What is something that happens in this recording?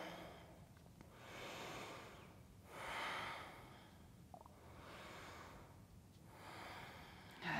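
A woman breathes slowly and deeply.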